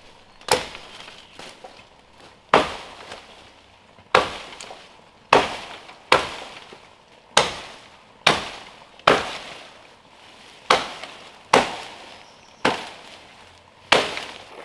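A machete chops into bamboo with sharp, repeated blows.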